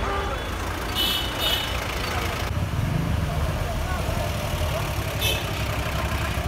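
A car horn honks briefly a few times.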